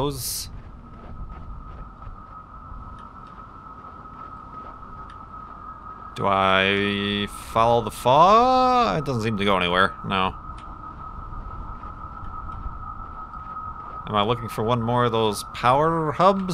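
Small footsteps patter softly on soft ground.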